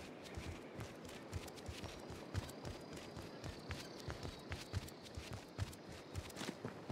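Running footsteps thud quickly and steadily.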